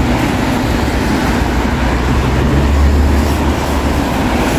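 A car engine rumbles low as it passes close by.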